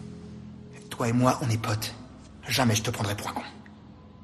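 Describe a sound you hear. A second man answers in a low, strained voice.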